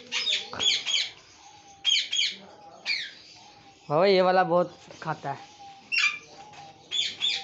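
Small birds chirp and squawk loudly nearby.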